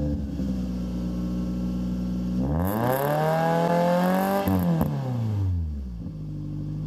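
A car engine idles with a deep exhaust rumble.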